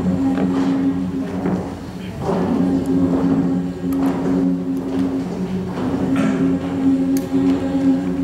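A mixed choir of young men and women sings together.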